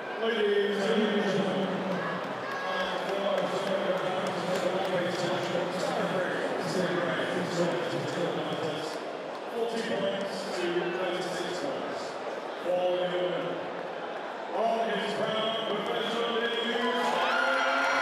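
A man announces loudly through a loudspeaker in a large echoing hall.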